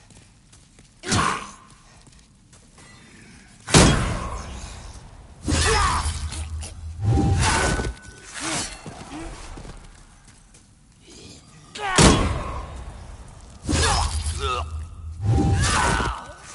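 Blades slash and strike with sharp, heavy impacts.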